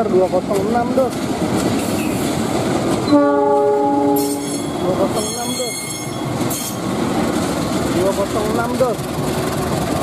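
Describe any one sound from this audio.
A diesel locomotive engine rumbles as it passes close by.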